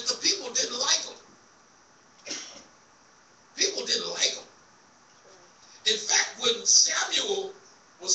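A man preaches with animation into a microphone, echoing in a large room.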